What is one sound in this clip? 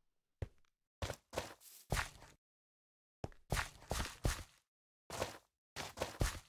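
Footsteps thud on dirt.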